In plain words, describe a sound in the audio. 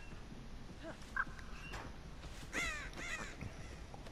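Footsteps crunch through undergrowth.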